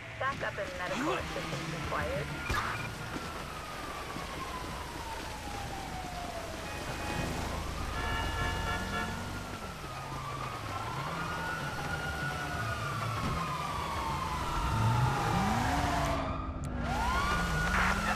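A police siren wails and rises and falls.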